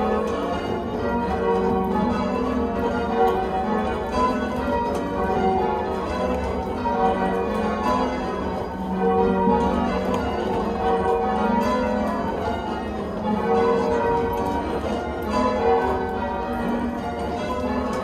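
Church bells ring out overhead in a steady changing sequence.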